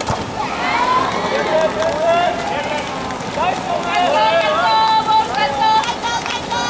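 Water splashes as swimmers kick and stroke through a pool outdoors.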